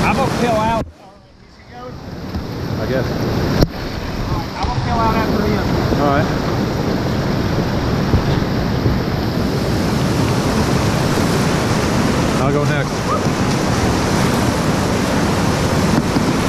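A paddle splashes through the water in strokes.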